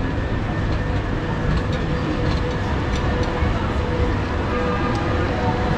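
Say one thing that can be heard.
A tram hums as it passes close by.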